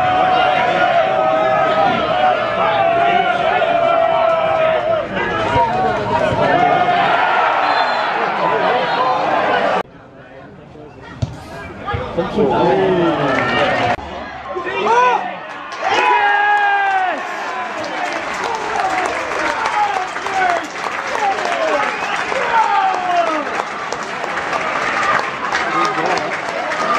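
A large crowd of spectators cheers and chants loudly outdoors.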